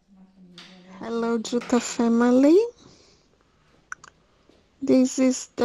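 A woman speaks close by in a soft, affectionate, sing-song voice.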